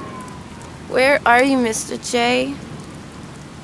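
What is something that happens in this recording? A young woman sings out in a high voice, close by.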